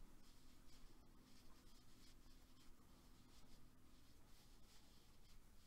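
A crochet hook softly scratches and rustles through yarn.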